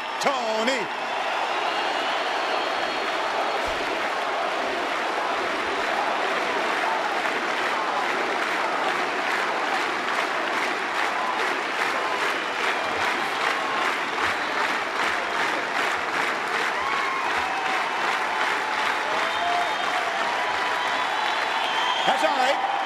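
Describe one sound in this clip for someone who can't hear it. A large crowd applauds and cheers loudly in a big open stadium.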